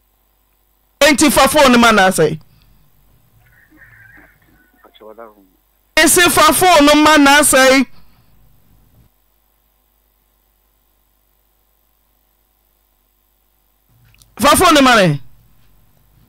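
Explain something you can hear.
A woman sings loud, wailing phrases into a microphone.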